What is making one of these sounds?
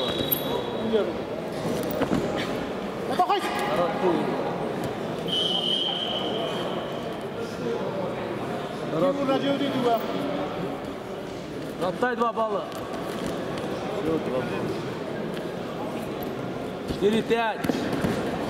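Bodies slap against each other as two wrestlers grapple.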